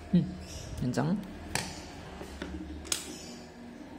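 Small plastic and metal parts click and tap on a wooden table.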